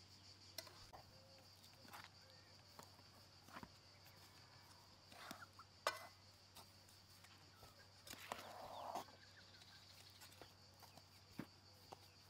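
A metal scoop scrapes and scratches through flour in a bowl.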